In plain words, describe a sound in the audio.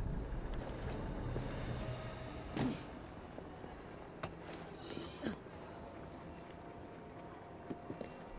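Footsteps and hand grips thud on stone.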